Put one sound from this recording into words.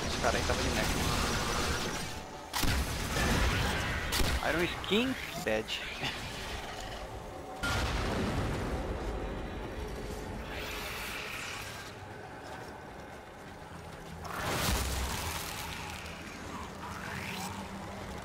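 A young man talks to a microphone with animation.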